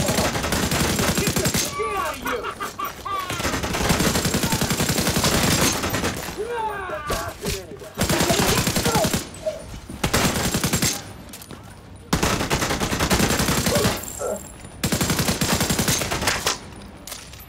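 A rifle fires rapid bursts of gunshots at close range.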